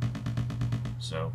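A bright electronic tone sweeps quickly downward at the end.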